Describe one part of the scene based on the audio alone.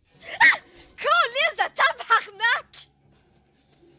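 A young woman laughs loudly into a microphone.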